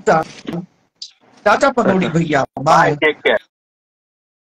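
A middle-aged man talks with animation through a phone microphone.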